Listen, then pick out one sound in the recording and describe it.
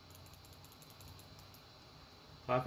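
Keyboard keys click softly.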